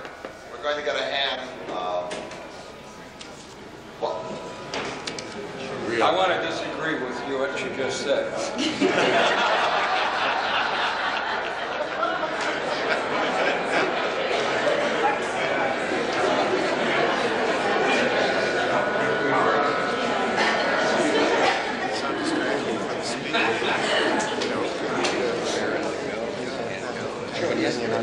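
An elderly man speaks through a microphone in a large, echoing hall.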